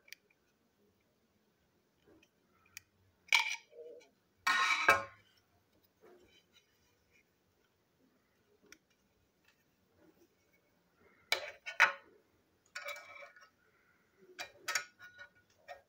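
Small plastic parts click and clatter as they are handled.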